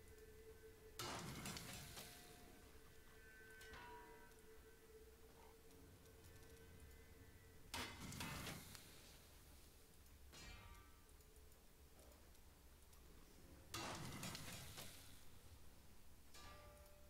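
A game's crafting effect whooshes and shimmers.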